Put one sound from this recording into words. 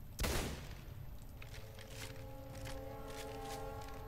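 A gun fires a single shot.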